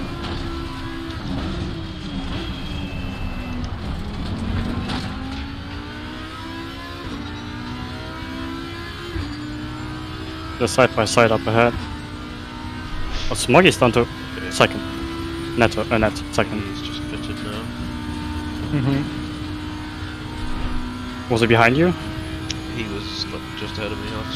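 A race car engine drones steadily and shifts pitch as the car changes gear.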